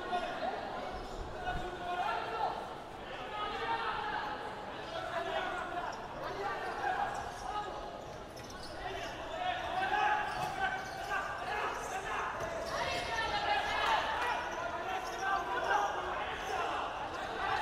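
A crowd murmurs and cheers in a large echoing hall.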